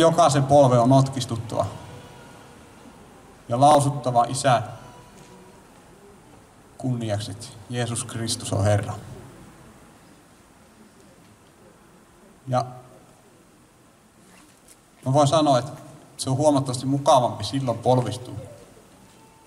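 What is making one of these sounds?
A man speaks in short bursts through a microphone and loudspeakers, outdoors.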